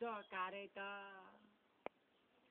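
A man chants loudly nearby in a drawn-out voice.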